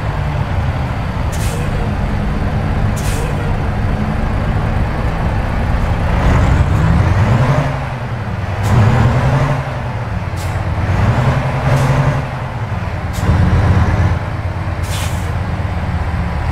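A truck's diesel engine rumbles steadily, its pitch rising and falling as it revs up and shifts gears.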